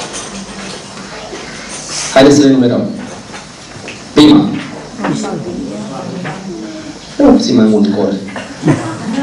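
A young man preaches with passion into a microphone in an echoing room.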